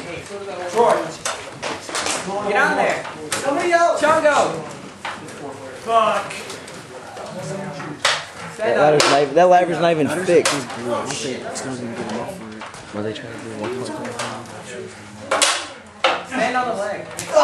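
Metal ladders rattle and clank as wrestlers climb them.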